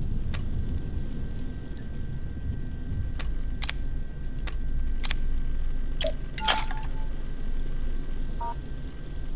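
Short, sharp interface clicks sound every so often.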